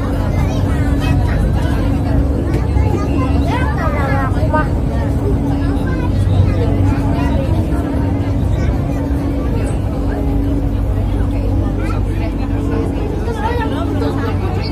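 A train rumbles steadily along the track.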